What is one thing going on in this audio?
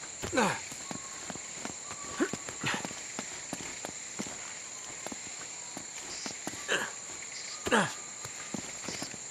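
Footsteps tread steadily through undergrowth.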